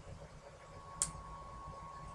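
A small plastic glue bottle clicks as it is handled.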